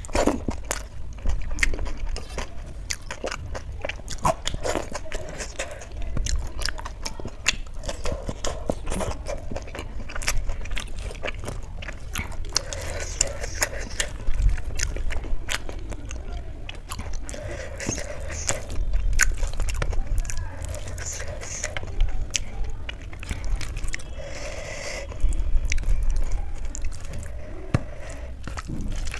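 A woman chews food wetly and smacks her lips close to a microphone.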